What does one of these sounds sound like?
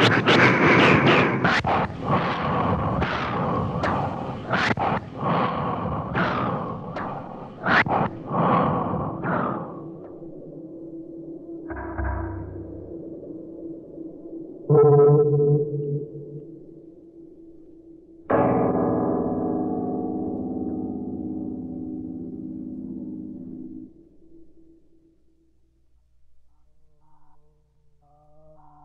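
Music plays from a spinning vinyl record.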